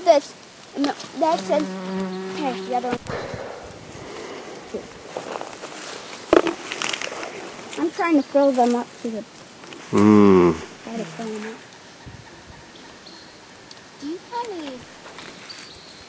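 Young children talk and chatter nearby outdoors.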